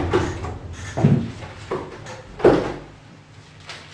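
A door closes.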